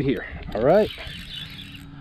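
A fishing reel whirs as its handle is turned.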